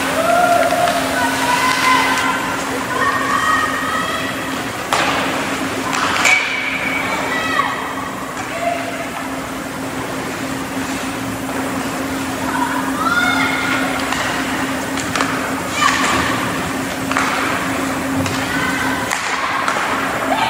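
Skates scrape and hiss across the ice in a large echoing rink.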